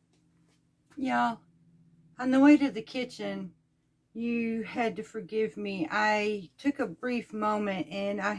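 A middle-aged woman talks with animation close to the microphone.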